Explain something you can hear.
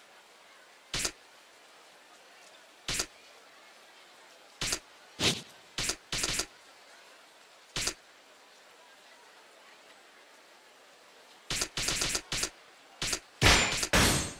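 Short electronic menu blips sound as a selection moves from item to item.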